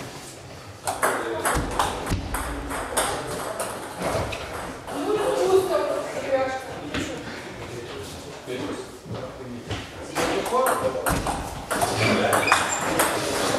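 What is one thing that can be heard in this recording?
A table tennis ball clicks back and forth on paddles and a table in an echoing hall.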